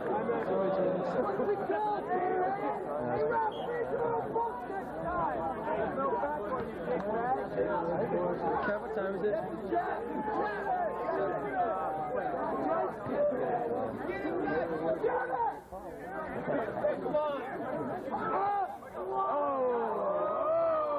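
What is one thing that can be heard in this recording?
A large crowd of young people chatters and calls out nearby, outdoors.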